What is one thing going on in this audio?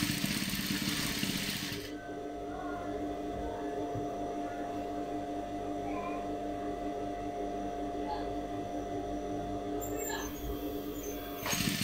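A sewing machine hums steadily as it stitches.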